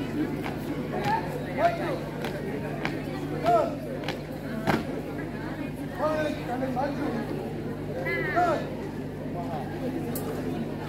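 A group of young people shouts marching calls together.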